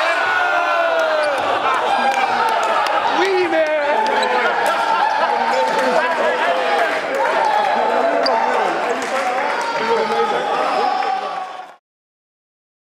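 A group of young men cheer and shout excitedly in a large echoing hall.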